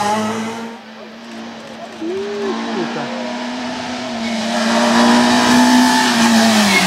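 A rally car engine roars and revs loudly as the car speeds closer.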